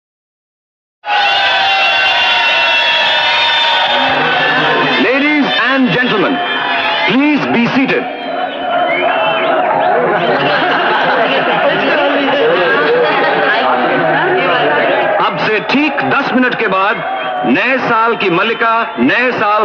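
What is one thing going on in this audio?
A band plays lively dance music.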